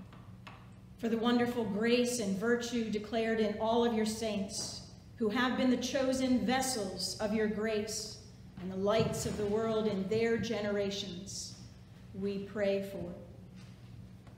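An older woman speaks calmly and clearly, close by in a reverberant room.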